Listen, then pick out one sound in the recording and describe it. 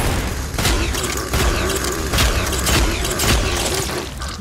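A chainsaw revs and buzzes close by.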